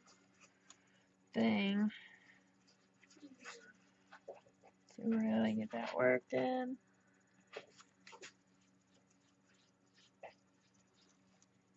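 A pastel crayon scratches and rubs softly across paper.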